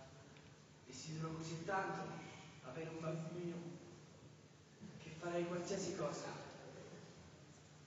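A man speaks quietly at a distance in a large echoing hall.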